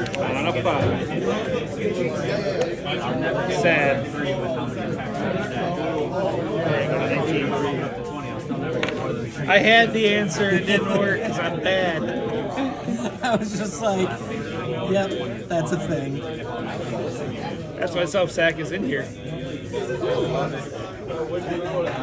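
Playing cards riffle and slide as a deck is shuffled by hand.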